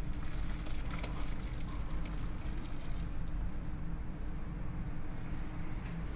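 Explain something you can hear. Liquid pours and splashes into a metal bowl.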